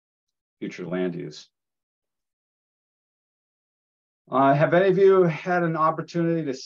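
A man speaks calmly over an online call, pausing in between.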